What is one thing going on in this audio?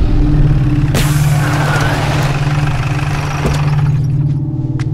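Tyres skid and crunch to a stop on dirt.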